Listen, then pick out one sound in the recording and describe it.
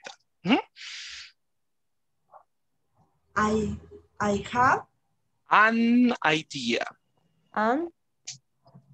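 A young man speaks with animation over an online call.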